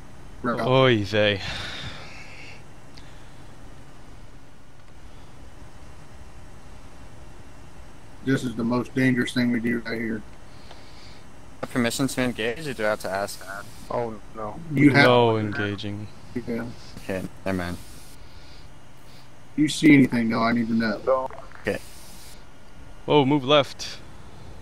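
A man talks calmly into a headset microphone, close by.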